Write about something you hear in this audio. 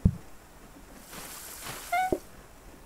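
Water splashes briefly from a tap.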